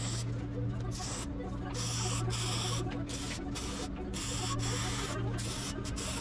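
An electric welder crackles and buzzes in short bursts.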